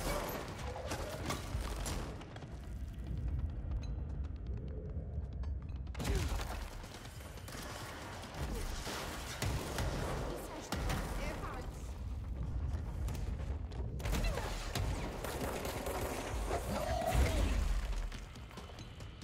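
Heavy debris crashes and rumbles.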